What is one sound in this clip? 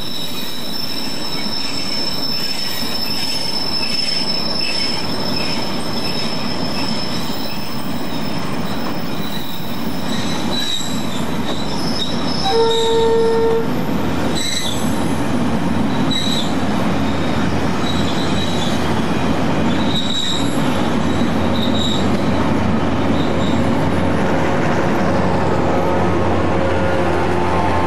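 A long freight train rolls slowly past on the rails close by.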